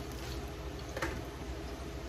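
A metal lid clinks on a pot.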